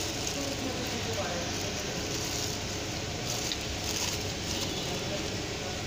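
Plastic wrapping crinkles as a hand handles it.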